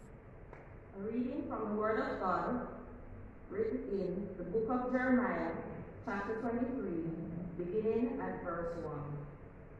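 A woman speaks into a microphone through a loudspeaker in a large echoing room.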